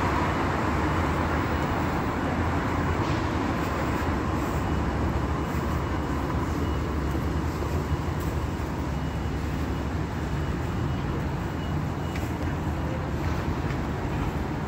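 Footsteps tap on a pavement close by.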